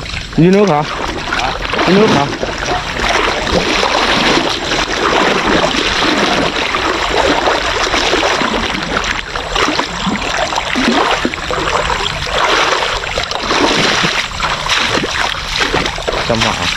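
Water splashes and sloshes as someone wades through shallow mud and water.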